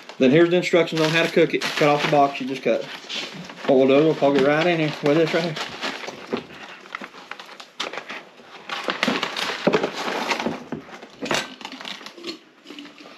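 Foil bags crinkle and rustle as they are handled.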